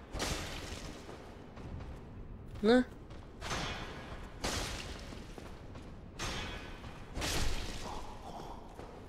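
Swords swish and clang against metal armour.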